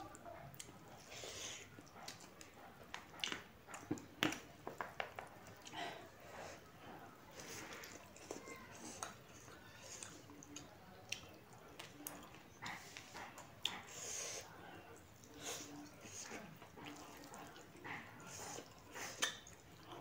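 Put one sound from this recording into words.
A woman chews and smacks her lips close up.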